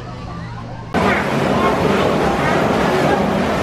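A water wheel turns with a splashing rush.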